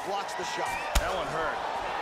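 A kick lands with a sharp thud.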